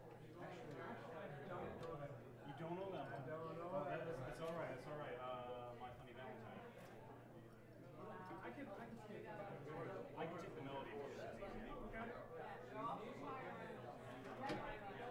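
Drums and cymbals keep a soft beat.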